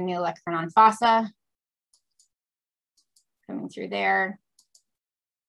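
A woman speaks calmly over an online call, in short phrases.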